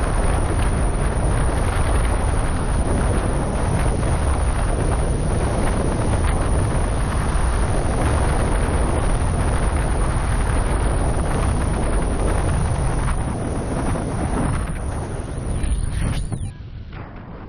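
Strong wind roars past a microphone during flight.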